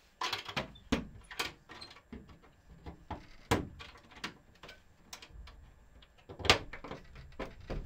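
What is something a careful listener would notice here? A screwdriver clicks and scrapes against a small metal latch on wood.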